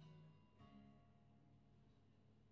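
Two acoustic guitars play a few notes that ring out and fade.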